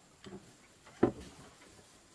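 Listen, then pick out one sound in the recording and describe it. A metal pot is set down with a knock.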